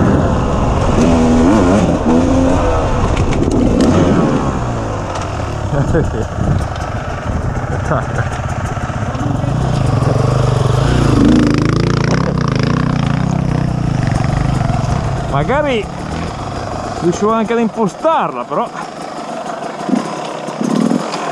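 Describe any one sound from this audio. A motorcycle engine roars and revs up and down.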